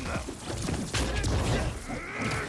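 An explosion bursts with a loud crackling blast.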